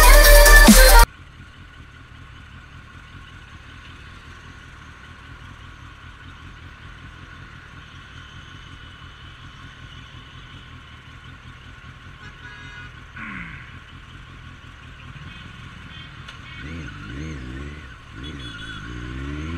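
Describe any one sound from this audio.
A motorcycle engine idles quietly in slow traffic.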